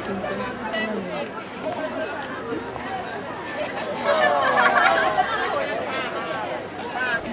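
A crowd of young people chatters outdoors nearby.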